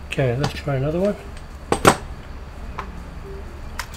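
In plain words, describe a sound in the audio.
A metal hand tool clatters down onto a hard bench.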